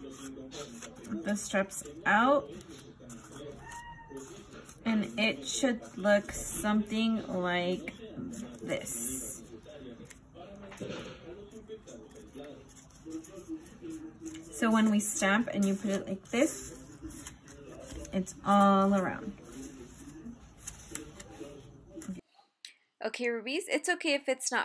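Cardboard rustles and crinkles as it is handled.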